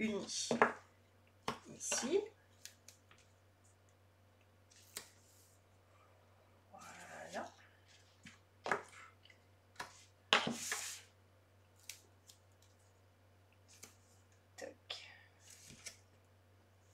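A scoring tool scrapes along paper in short strokes.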